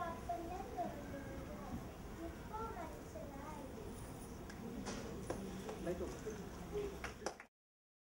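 An elderly woman speaks calmly, heard from the audience.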